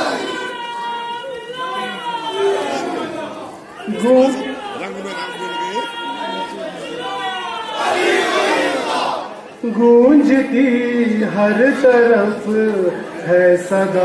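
A young man sings a chant into a microphone, heard through loudspeakers.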